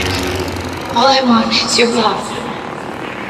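A lightsaber hums and swooshes through the air.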